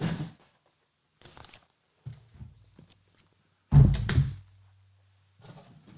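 A cardboard box is set down on a hard surface with a dull thud.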